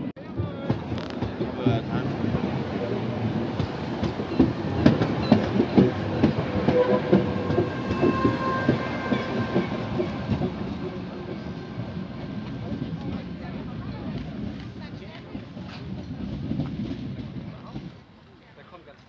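A tram rumbles past close by on rails and fades into the distance.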